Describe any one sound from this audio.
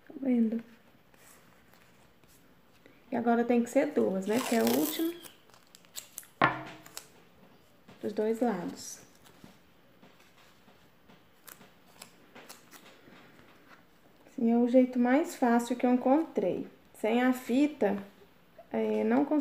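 A woman talks calmly close by, explaining.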